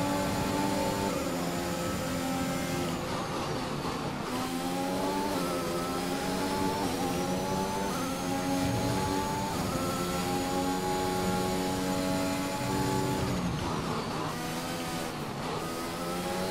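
A racing car engine screams at high revs, dropping in pitch on each downshift and climbing again as it accelerates.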